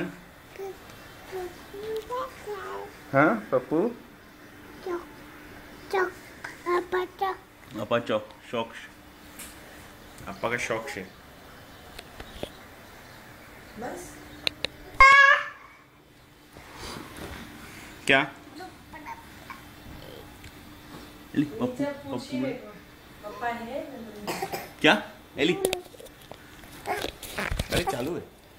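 A toddler babbles and chatters close by.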